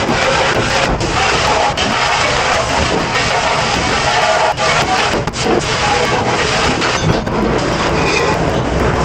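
A spray nozzle hisses loudly as water blasts over metal pans.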